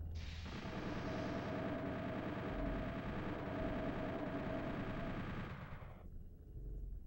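A video game chainsaw buzzes loudly.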